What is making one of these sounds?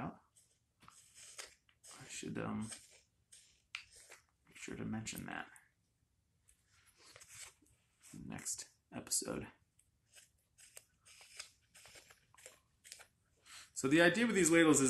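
A knife shaves and scrapes wood in short strokes.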